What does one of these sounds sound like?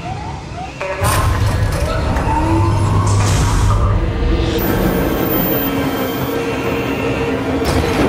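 A heavy airlock door slides open with a rush of air.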